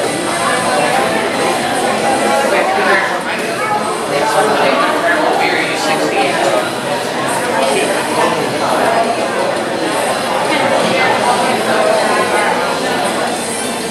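A second man answers from the audience, speaking loudly.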